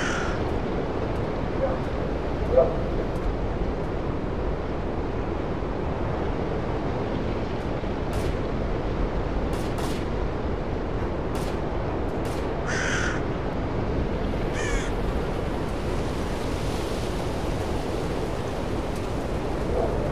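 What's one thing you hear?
Wind blows steadily through the trees outdoors.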